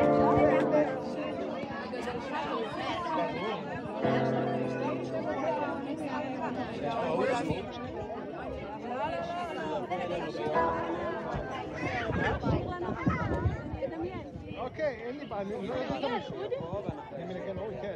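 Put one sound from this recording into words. Several people chat and murmur in the background.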